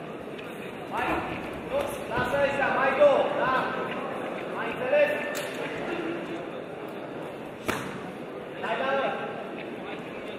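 Men in a crowd shout encouragement loudly.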